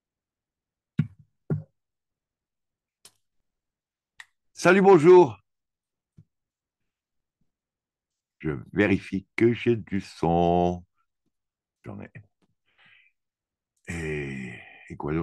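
An elderly man speaks calmly over an online call, in short bursts with pauses.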